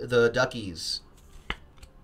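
A man speaks with animation, close to a microphone.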